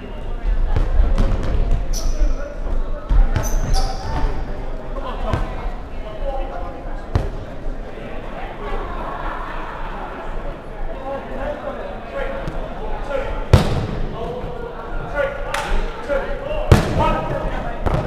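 A ball thuds sharply against hands and the floor.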